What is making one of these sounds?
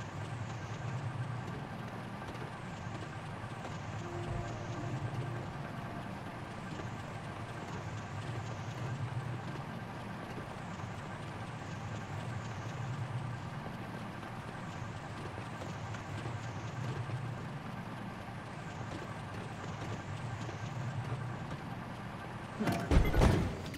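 A vehicle engine hums and whirs steadily as it drives.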